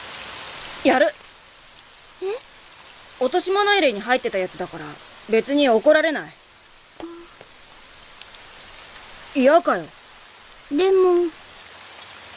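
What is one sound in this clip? A young boy speaks calmly.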